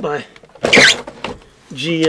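A cabinet door creaks open.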